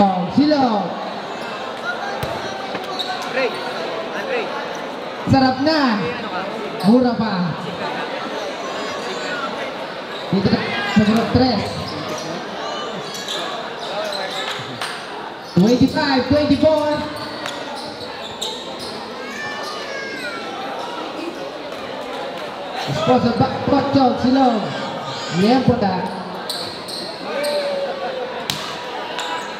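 A large crowd murmurs and cheers in an echoing indoor hall.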